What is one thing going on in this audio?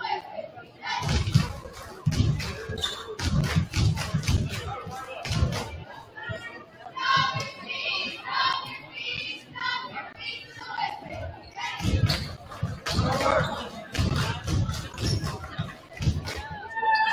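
Young players in a huddle clap and stomp.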